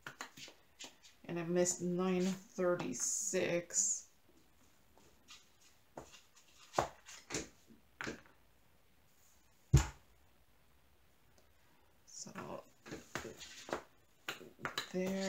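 Small plastic containers clatter and click as they are picked up.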